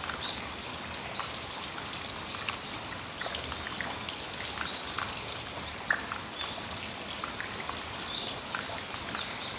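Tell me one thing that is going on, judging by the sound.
Raindrops drip and tap onto a metal awning.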